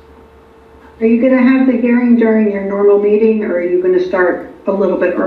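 A woman speaks calmly, heard through a room microphone.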